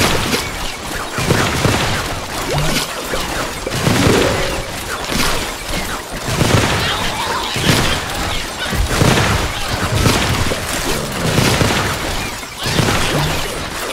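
Game plants fire with repeated popping shots.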